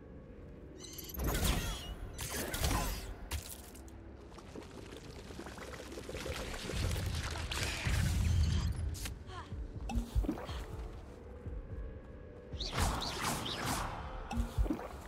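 Spells burst with loud whooshing blasts.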